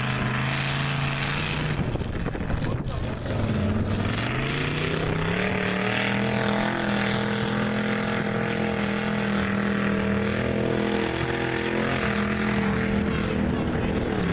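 A truck engine roars loudly, revving up and down.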